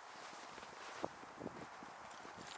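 Footsteps crunch in snow close by.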